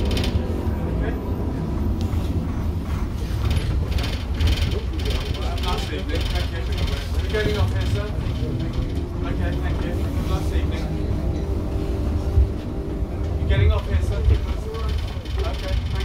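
Passengers chatter quietly nearby.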